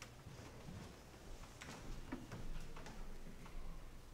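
Footsteps shuffle across a wooden floor.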